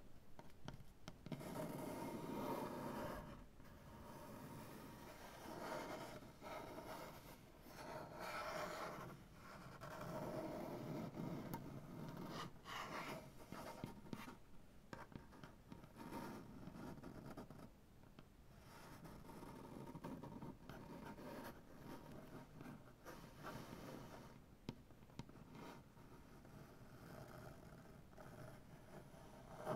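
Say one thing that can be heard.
Fingernails tap on a wooden surface.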